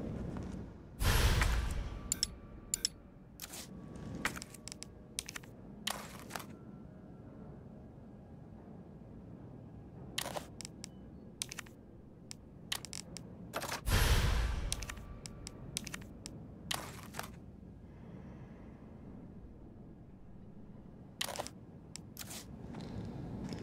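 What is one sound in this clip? Short menu clicks and beeps sound one after another.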